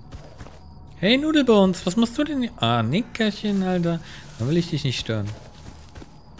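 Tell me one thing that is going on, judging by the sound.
A man talks loudly and with animation into a close microphone.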